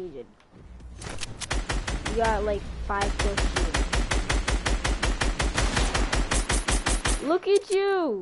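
Rapid gunshots rattle in quick bursts.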